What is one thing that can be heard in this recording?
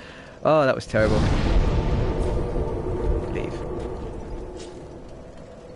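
A fire bursts up with a deep, roaring whoosh that slowly dies away.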